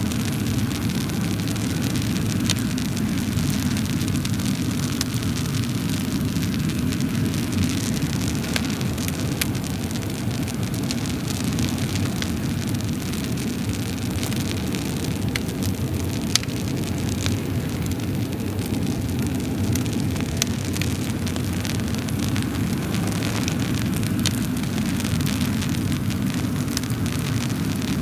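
Burning wood crackles and pops sharply now and then.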